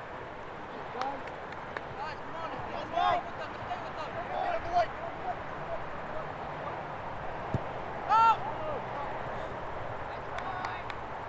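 Young players shout to each other at a distance across an open field.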